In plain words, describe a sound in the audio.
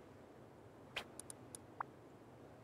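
Short clicks come from a building menu.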